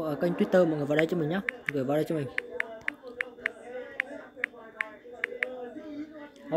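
Phone keyboard taps click in quick succession.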